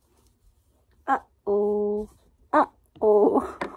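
A young woman speaks playfully close by.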